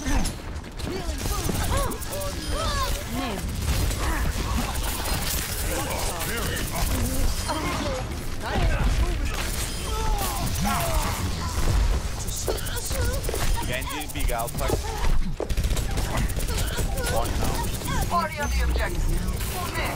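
An electric beam weapon crackles and zaps in rapid bursts.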